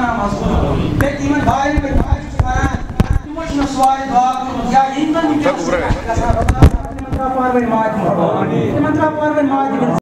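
A man speaks through a microphone and loudspeakers, calmly and steadily, in an echoing hall.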